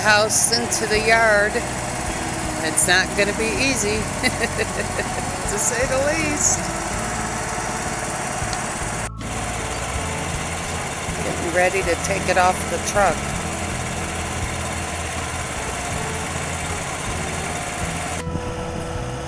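A truck engine rumbles steadily nearby.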